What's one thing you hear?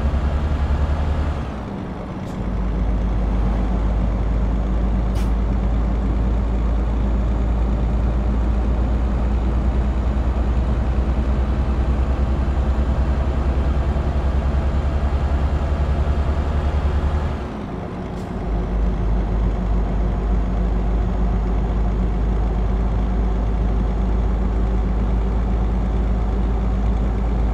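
A truck's diesel engine drones steadily, dipping briefly as it shifts gears.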